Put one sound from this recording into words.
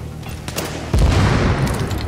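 A sniper rifle fires with a loud boom.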